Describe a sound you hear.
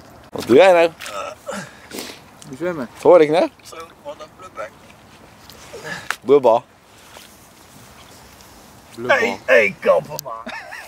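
Water splashes as a man reaches into it.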